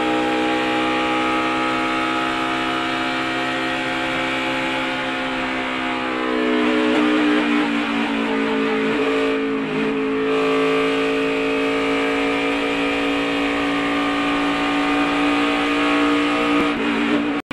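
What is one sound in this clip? A race car engine roars at high speed, close by.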